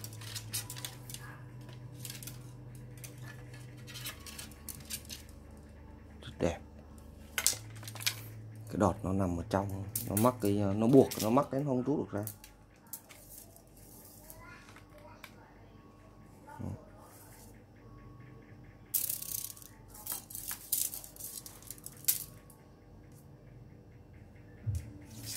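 Fishing rods clatter and tap against each other.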